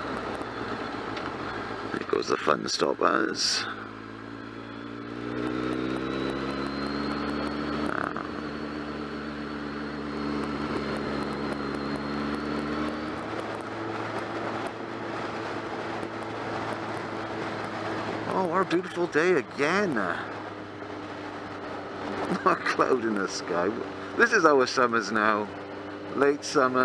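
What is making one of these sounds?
A motorcycle engine hums steadily and rises in pitch as it speeds up.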